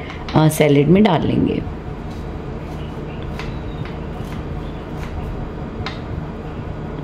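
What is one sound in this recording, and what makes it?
A knife chops through an onion on a wooden board.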